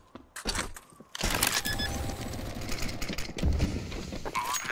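A keypad beeps several times in short, high tones.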